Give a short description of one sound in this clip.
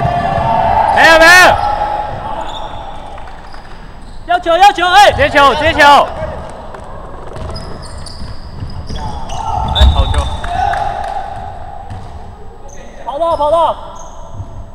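Basketball sneakers squeak sharply on a hardwood court in a large echoing gym.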